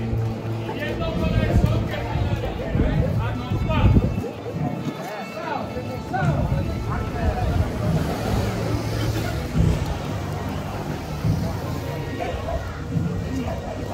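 A crowd murmurs and talks outdoors nearby.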